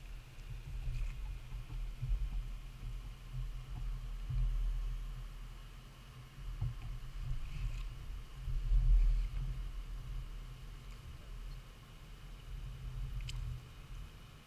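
Oars splash and dip in the water.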